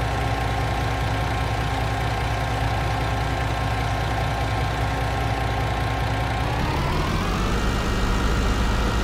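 A heavy truck engine rumbles steadily, then revs up and rises in pitch.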